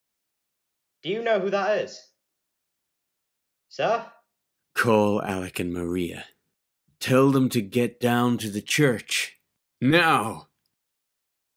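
A man speaks in a low, strained voice in short bursts.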